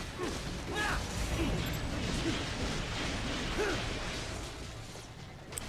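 Heavy impacts thud during a fight.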